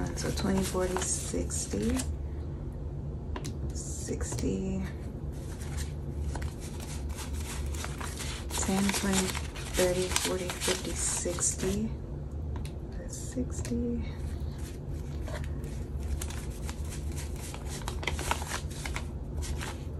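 Paper banknotes rustle and flick as they are counted by hand.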